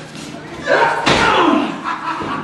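A body thuds heavily onto a wrestling ring mat.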